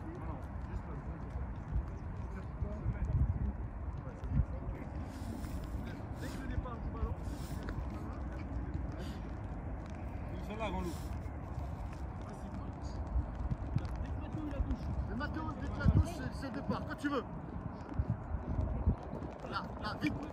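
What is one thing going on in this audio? Footballs thump as they are kicked on grass.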